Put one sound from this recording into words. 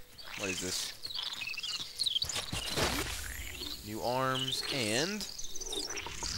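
A small cartoon creature calls out with warbling, gliding cries.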